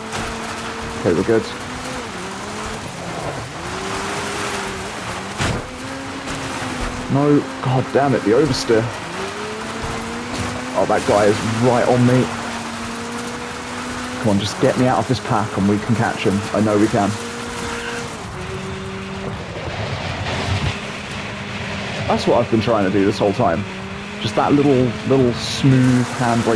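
A buggy engine roars steadily, rising and falling in pitch as it shifts gears.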